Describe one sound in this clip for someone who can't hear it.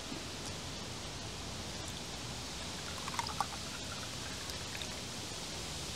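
Liquid pours from a glass carafe into a glass.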